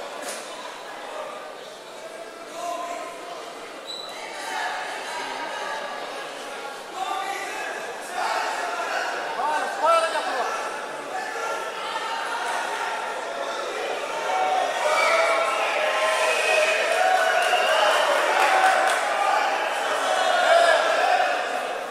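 A crowd of spectators chatters and shouts in a large echoing hall, growing louder.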